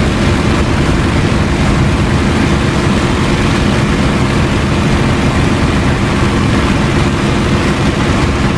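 Wind rushes loudly past an aircraft canopy.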